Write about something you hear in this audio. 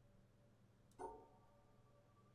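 A puzzle game plays a short error tone.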